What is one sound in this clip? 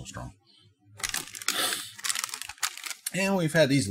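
Plastic packaging crinkles in a man's hands.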